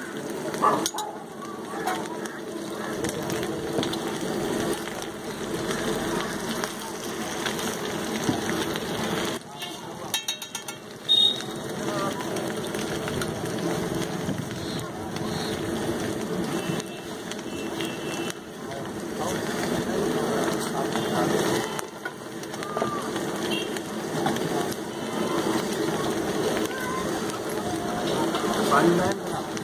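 Potatoes sizzle in oil on a hot griddle.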